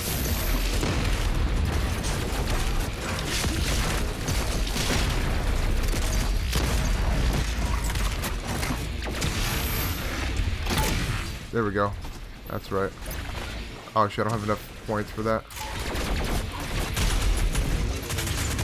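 Rapid gunfire blasts out again and again.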